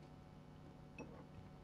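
A glass bottle clinks against a glass.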